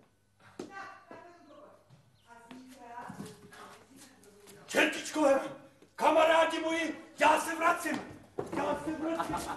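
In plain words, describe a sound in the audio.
A man speaks loudly and with animation.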